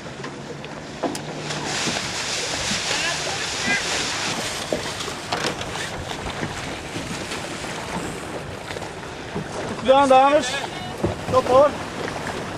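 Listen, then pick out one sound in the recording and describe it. Water splashes against a sailing boat's hull.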